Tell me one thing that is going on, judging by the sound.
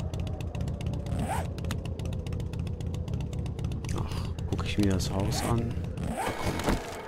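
A motorbike engine rumbles steadily.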